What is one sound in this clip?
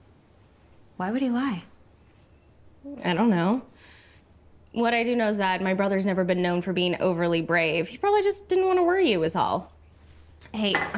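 A woman answers calmly nearby.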